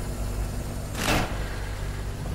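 A heavy metal lever clanks as it is pulled.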